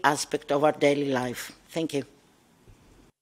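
A woman speaks into a microphone with animation.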